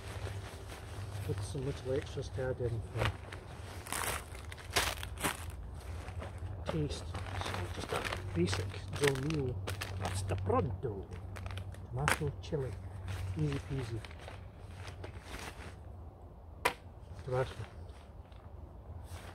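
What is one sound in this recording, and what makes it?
A fabric bag rustles and crinkles in a man's hands.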